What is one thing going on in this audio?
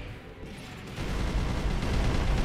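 Heavy guns fire rapidly with crackling blasts.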